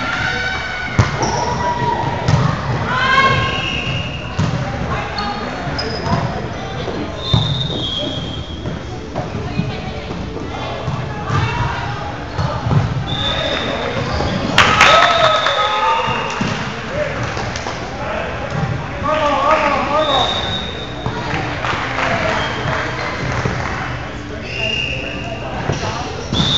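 A volleyball is hit with sharp smacks that echo in a large hall.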